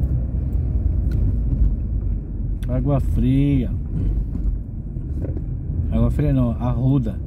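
A car engine hums steadily inside the car.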